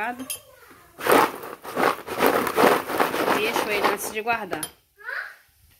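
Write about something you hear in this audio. Food pieces rustle and scrape in a plastic bowl as it is shaken.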